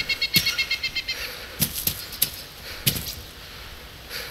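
Footsteps rustle through grass outdoors.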